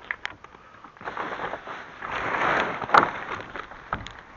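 A plastic bag rustles as hands handle it.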